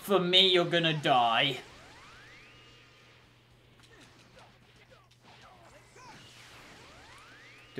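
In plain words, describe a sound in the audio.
Energy blasts whoosh and crackle in a game.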